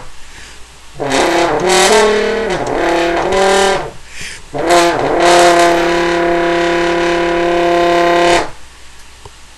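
A French horn plays a melody up close, ending on a long held note.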